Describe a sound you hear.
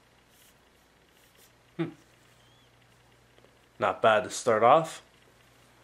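Playing cards rustle softly as they are shuffled by hand.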